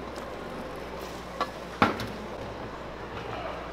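Pieces of raw meat drop with a wet slap into a metal bowl.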